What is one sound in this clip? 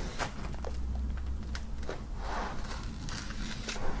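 A knife slits plastic wrap.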